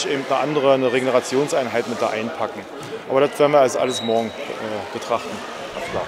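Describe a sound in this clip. A volleyball is struck with sharp smacks in an echoing hall.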